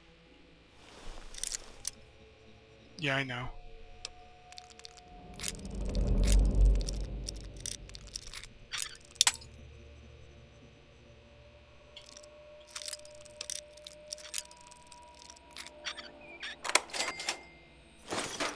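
A metal pick scrapes and clicks inside a lock.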